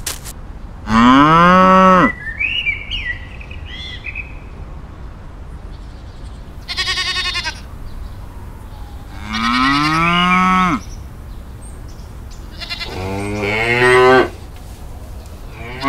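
Dry straw rustles softly as it is handled.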